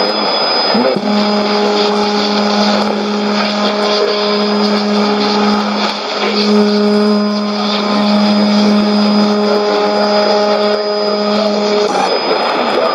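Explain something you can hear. A shortwave radio sounds a steady, humming tone that breaks off briefly now and then.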